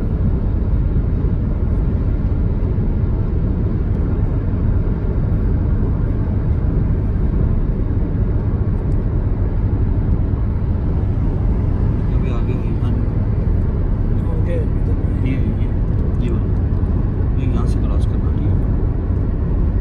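A car engine hums and tyres roar steadily on a highway, heard from inside the car.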